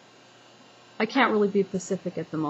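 A woman speaks close to a microphone in a calm voice.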